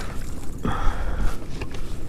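A fishing reel clicks as a line is wound in.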